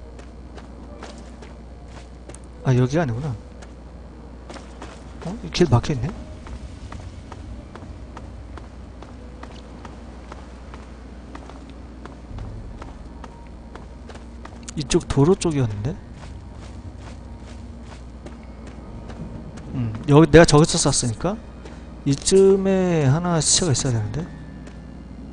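Footsteps crunch steadily over rubble and gravel.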